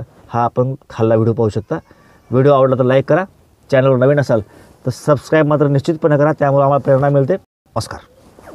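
A middle-aged man talks calmly and closely into a microphone.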